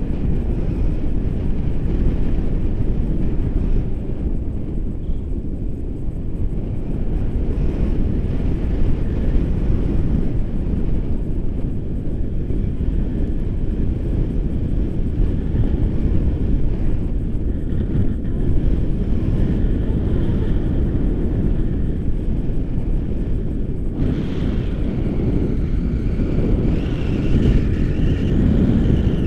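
Wind roars steadily against a microphone outdoors.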